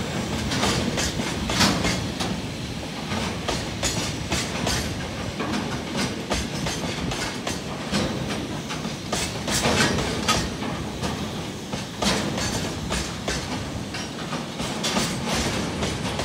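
A freight train rumbles along the tracks.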